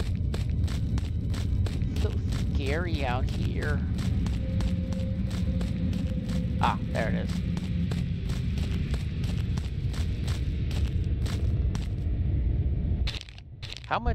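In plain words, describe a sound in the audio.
Footsteps crunch steadily over grass and leaves.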